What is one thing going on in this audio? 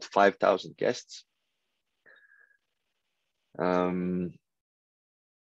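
A young man speaks calmly through an online call, pausing between phrases.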